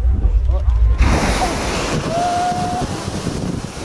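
A geyser erupts with a loud rushing whoosh of water and steam.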